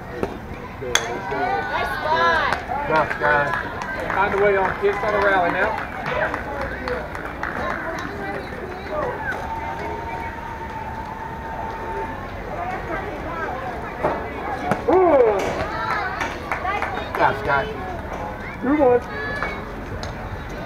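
Young women shout and cheer nearby outdoors.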